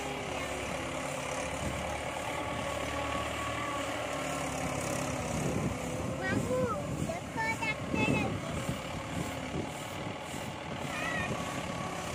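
Dry straw rustles and crackles under tractor tyres.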